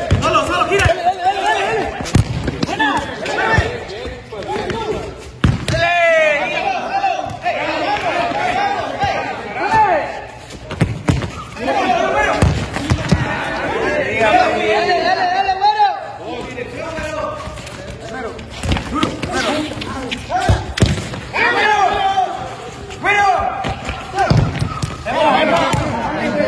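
A football is kicked with dull thuds on a hard court.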